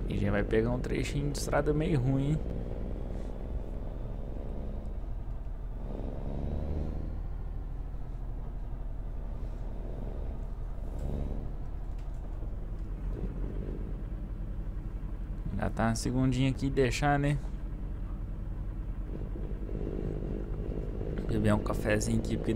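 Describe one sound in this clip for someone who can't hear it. A truck engine drones low and steadily.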